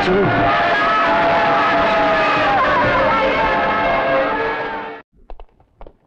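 Lively festive music with singing plays loudly, then cuts off.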